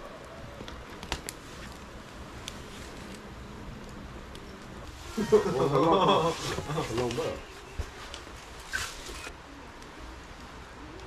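A wood fire crackles softly nearby.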